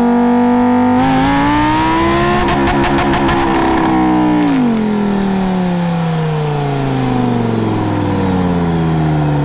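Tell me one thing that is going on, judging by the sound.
A sports car roars as it launches away and its engine note drops into the distance.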